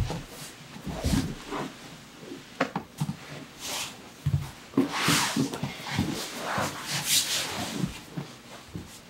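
Bodies shift and thump softly on a padded mat.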